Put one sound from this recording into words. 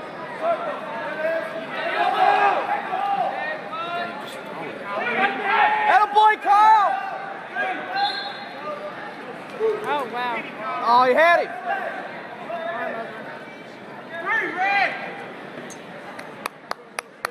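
Two wrestlers scuffle and grapple on a mat.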